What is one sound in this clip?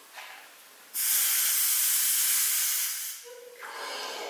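A man blows hard into a small device in a steady rush of air.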